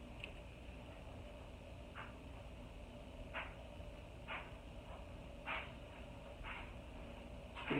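A small brush scratches softly against skin in short strokes.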